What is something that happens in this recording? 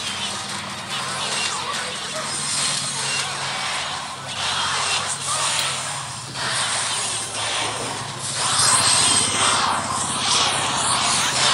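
Sound effects from a mobile strategy game's battle clash and crackle.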